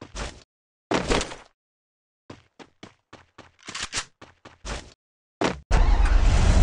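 Footsteps run over grass in quick bursts.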